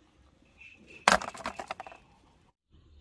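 Small fruits drop and thud into a woven basket.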